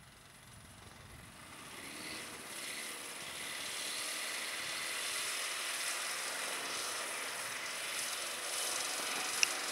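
A snowmobile engine drones as it drives past and grows louder.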